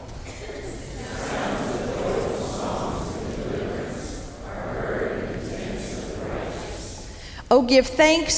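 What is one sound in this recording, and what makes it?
A congregation reads aloud together in a low murmur.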